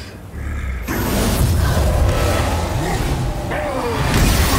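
A giant creature roars loudly and deeply.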